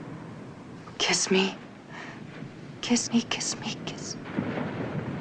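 A woman speaks breathlessly and pleadingly, close by.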